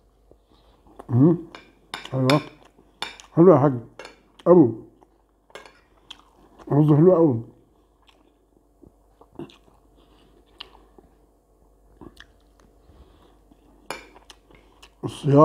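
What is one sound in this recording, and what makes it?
A spoon scrapes and clinks on a ceramic plate.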